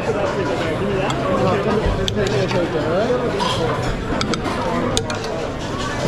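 A metal spoon scrapes and clinks against a metal tray.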